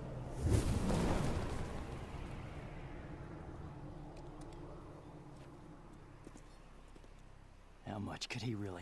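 Wind rushes loudly past, then slowly dies away.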